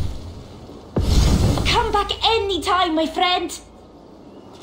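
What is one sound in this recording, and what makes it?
A young man answers with animation.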